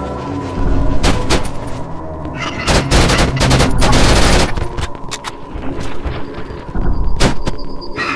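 A gun fires in loud bursts.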